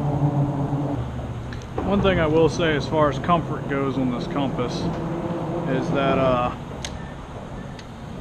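A fishing reel whirs as the line is wound in.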